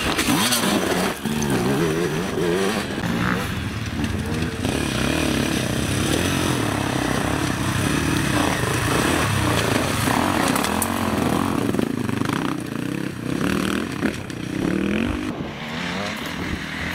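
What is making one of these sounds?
Dirt bike engines rev and sputter up close, rising and falling.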